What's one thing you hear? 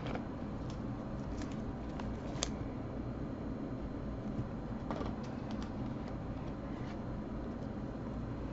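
A plastic card sleeve crinkles as it is handled.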